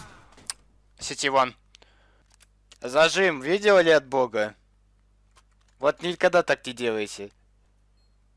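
A young man talks excitedly into a headset microphone, close up.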